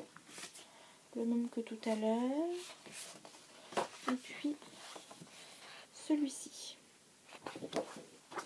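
Stiff paper card rustles and flaps as it is handled.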